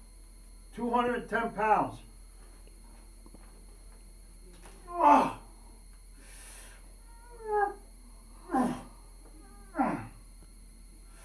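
An elderly man grunts and groans loudly with effort, close by.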